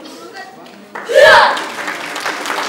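A child shouts loudly once.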